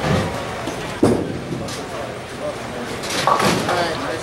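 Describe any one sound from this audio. A bowling ball rolls down the lane with a low rumble.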